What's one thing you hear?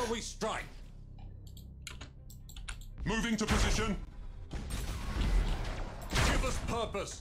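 Laser weapons fire and hum in a space battle game.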